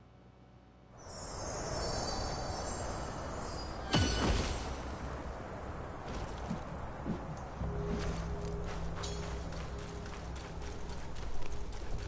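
Wind blows steadily over open ground.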